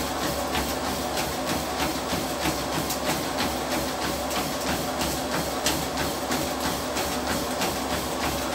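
Footsteps thud quickly and rhythmically on a treadmill belt.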